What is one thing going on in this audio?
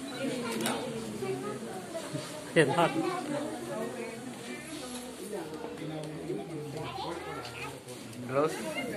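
Several adults chatter and talk over one another close by.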